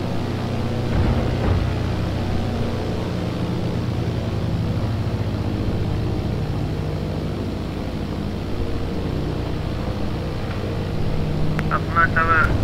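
A small propeller plane's engine drones steadily while taxiing.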